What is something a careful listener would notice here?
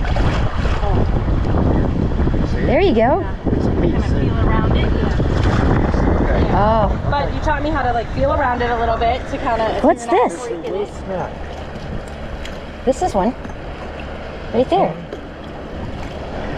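Feet slosh and splash through shallow water.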